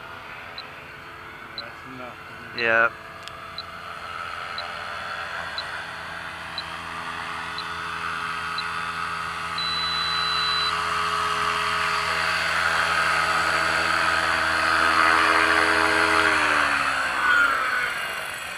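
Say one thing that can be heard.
A model helicopter's engine whines overhead, growing louder as it comes in to land, then winds down.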